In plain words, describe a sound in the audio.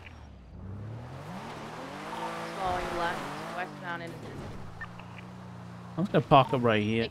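A car engine hums and revs.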